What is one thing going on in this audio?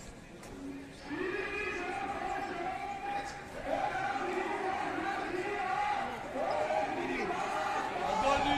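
A large crowd chants slogans loudly in unison outdoors.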